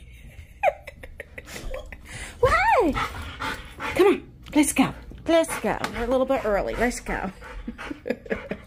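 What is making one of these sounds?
A dog whines and howls excitedly close by.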